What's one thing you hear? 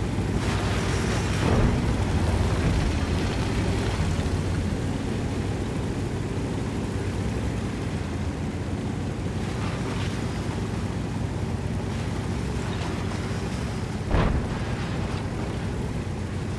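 Tank tracks clank and squeak.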